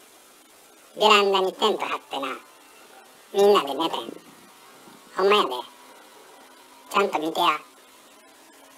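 A cat meows loudly several times close by.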